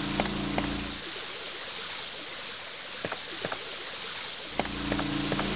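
Water splashes steadily in a fountain.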